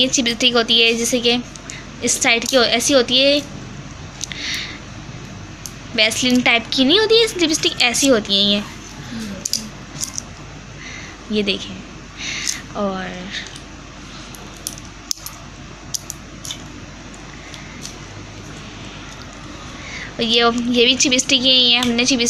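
Small plastic tubes tap and click as they are handled.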